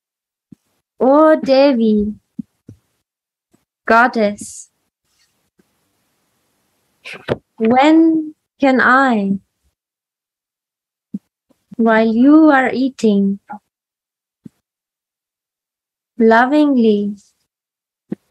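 A woman sings short phrases up close, with pauses between them, heard through an online call.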